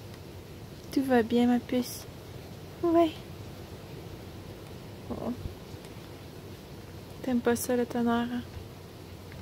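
A small dog whines and yelps close by.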